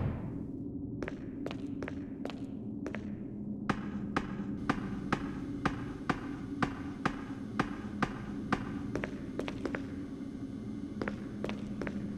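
Footsteps clang on metal steps and rungs in a steady rhythm.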